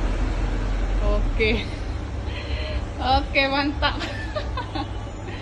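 A woman talks close by with animation, her voice slightly muffled.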